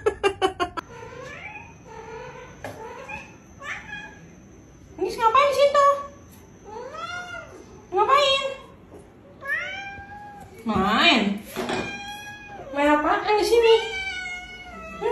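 A cat meows repeatedly, in rising and falling cries, close by.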